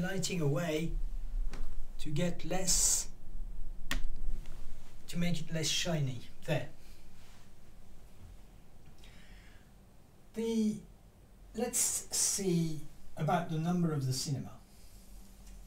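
An older man speaks calmly and clearly, close by, in short phrases with pauses.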